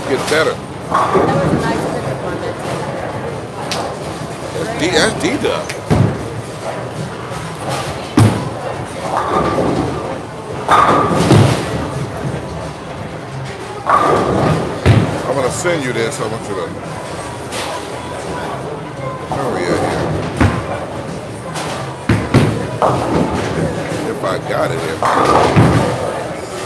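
A bowling ball rolls down a wooden lane.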